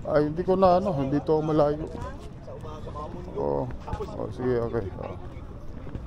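Adults chat casually nearby.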